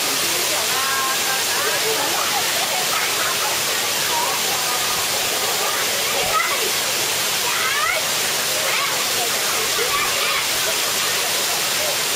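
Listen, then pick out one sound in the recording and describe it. Children and adults shout and chatter in the distance.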